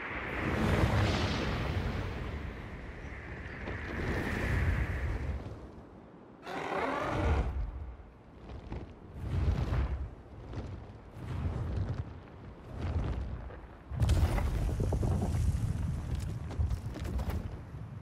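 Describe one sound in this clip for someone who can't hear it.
Wind roars and gusts.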